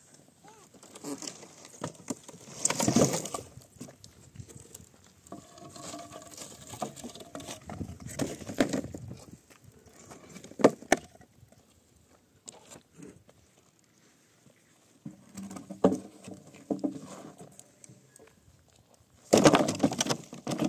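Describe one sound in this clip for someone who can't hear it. Wooden planks and debris clatter and knock.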